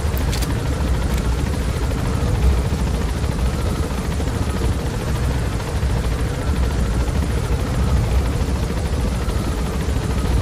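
A helicopter's engine and rotor drone steadily up close.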